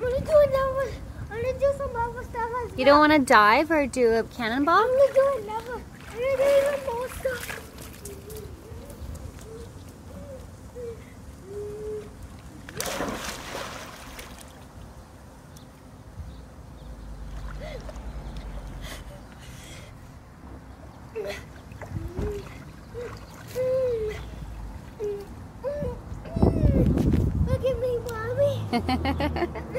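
A child talks excitedly nearby.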